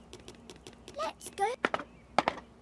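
A young girl's cartoon voice calls out eagerly.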